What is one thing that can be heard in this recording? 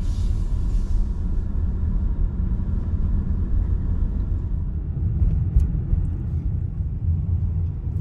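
A car engine hums steadily with tyres rolling on the road.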